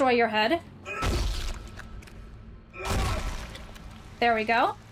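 Heavy boots stomp down with deep thuds.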